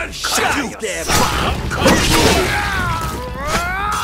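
Swords clash in a fight.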